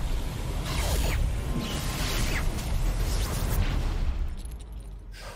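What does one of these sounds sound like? A deep blast rumbles and roars.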